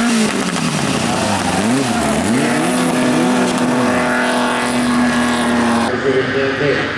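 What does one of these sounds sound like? Rally car engines roar and rev hard as cars race through a bend.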